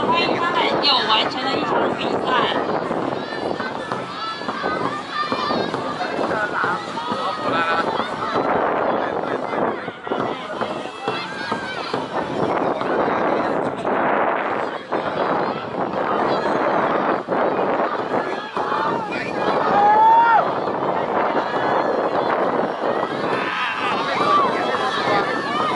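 Paddles splash rhythmically in the water.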